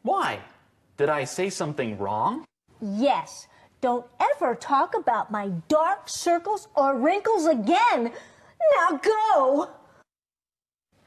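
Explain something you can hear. A middle-aged woman speaks excitedly and sternly.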